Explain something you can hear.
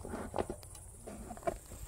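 A bee smoker puffs out smoke with soft bellows puffs.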